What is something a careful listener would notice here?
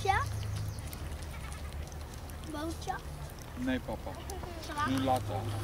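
A young girl speaks in a high voice close by.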